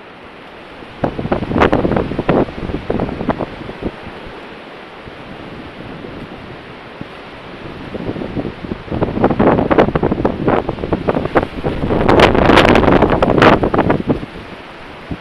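Strong wind gusts blow outdoors, rushing in bursts.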